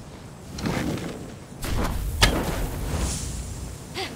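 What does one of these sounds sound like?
A magical shimmer chimes and crackles.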